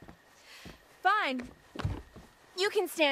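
A young woman groans and pants with effort.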